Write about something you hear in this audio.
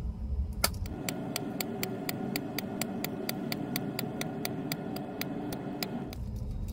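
A hand-held paper punch clicks repeatedly at a steady, quick pace.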